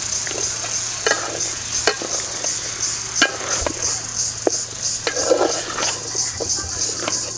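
A metal spoon scrapes and knocks against a cooking pot.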